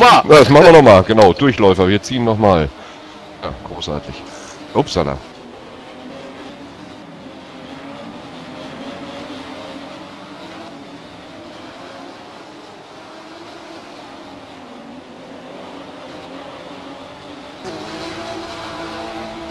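Racing car engines drone steadily at high revs.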